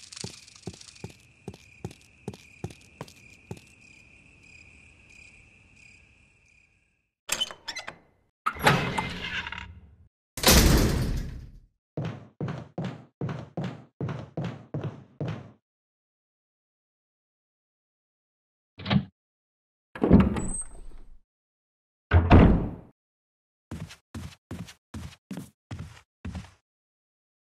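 Footsteps walk at a steady pace.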